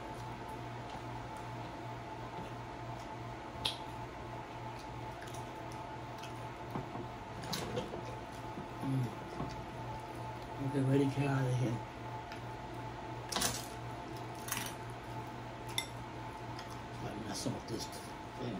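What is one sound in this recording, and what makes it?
A woman chews food with soft mouth sounds.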